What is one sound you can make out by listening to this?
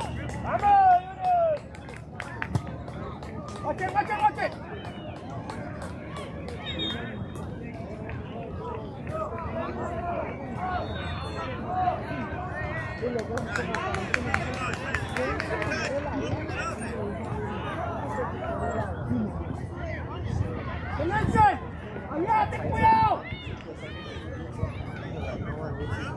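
Young men shout and call to each other outdoors on an open field.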